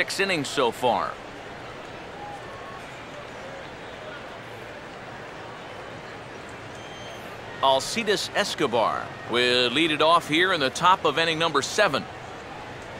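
A stadium crowd murmurs steadily in the distance.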